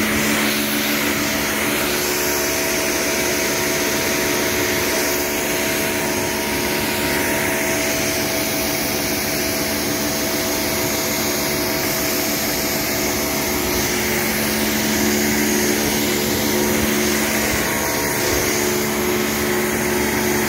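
A pressure washer jet hisses loudly against hard ground.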